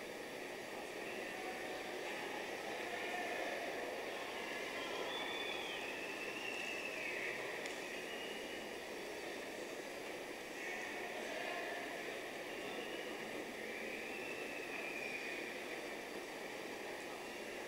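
A crowd murmurs in a large open arena.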